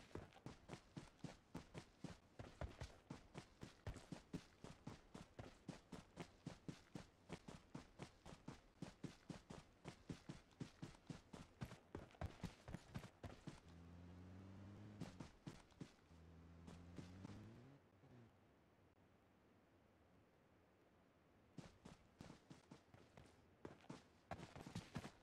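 Quick footsteps patter on grass and dirt.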